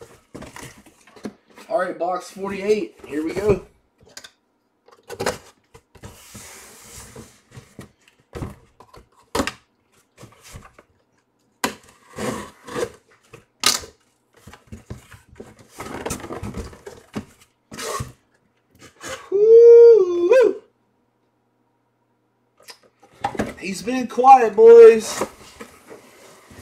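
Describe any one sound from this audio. Cardboard rustles and thumps as a box is handled and opened.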